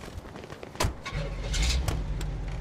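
A car engine starts up.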